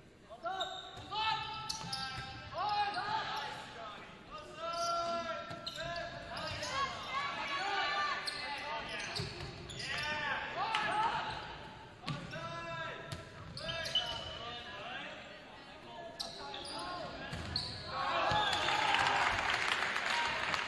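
Sneakers squeak sharply on a hard gym floor in a large echoing hall.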